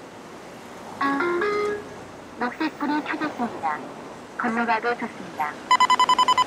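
A pedestrian crossing signal plays a short chiming melody.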